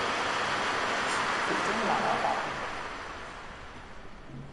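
A crowd applauds and the applause fades away.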